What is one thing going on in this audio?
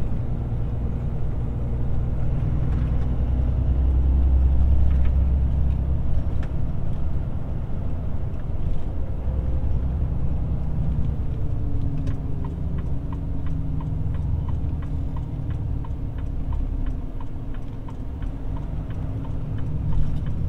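Tyres hum on a paved road.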